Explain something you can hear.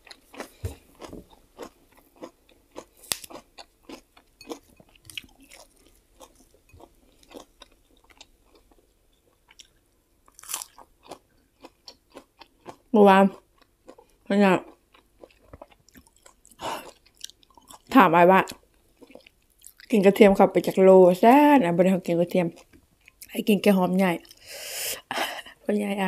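Crisp food crackles and rustles as hands tear it apart.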